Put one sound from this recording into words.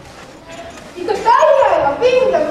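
A child speaks loudly on stage.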